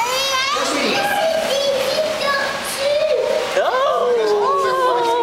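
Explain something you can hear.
A young child babbles and squeals nearby in a high, sing-song voice.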